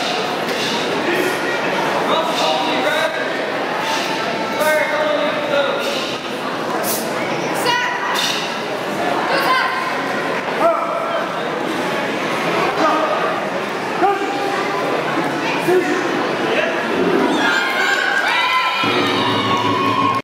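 A crowd of men and women chatters in a large echoing hall.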